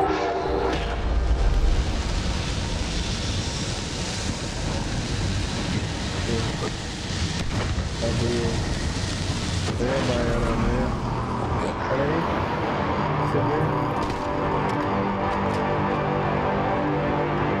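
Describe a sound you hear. Explosions from a video game boom and crackle.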